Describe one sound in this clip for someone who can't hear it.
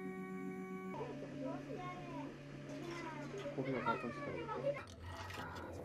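A printer motor whirs steadily.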